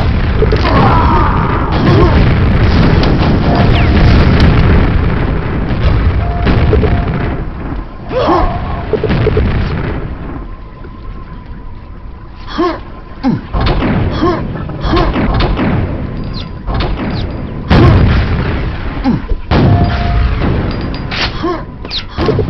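Game gunfire clicks and thuds in quick bursts.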